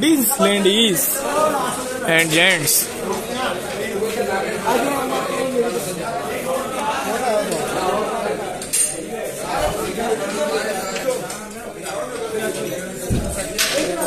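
A crowd of men chatters throughout in a busy room.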